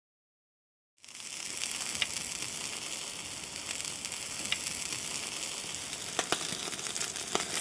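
Meat skewers sizzle and crackle over a grill.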